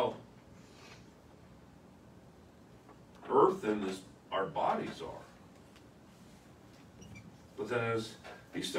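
A middle-aged man speaks calmly, with pauses.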